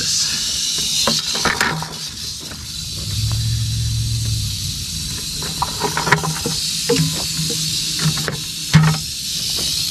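A plastic bucket tips over and thumps onto dry ground.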